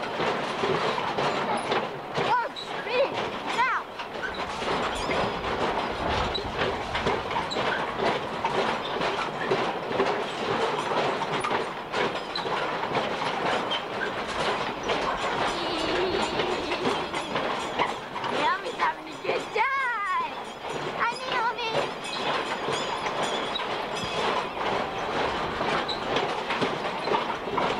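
A fairground ride rumbles and clatters steadily.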